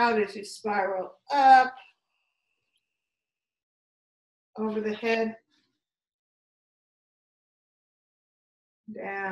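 An older woman speaks calmly and close by, in short phrases with pauses.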